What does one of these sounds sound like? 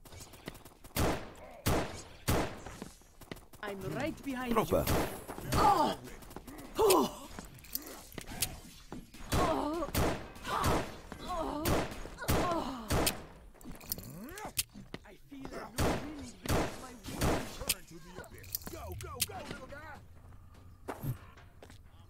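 A revolver fires shots in a video game.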